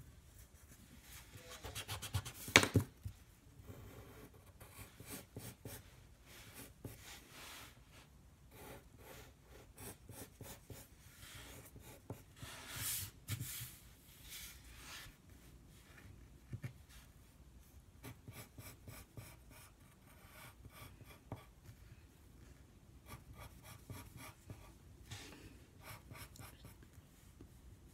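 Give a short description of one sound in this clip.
A pencil scratches and scrapes across paper up close.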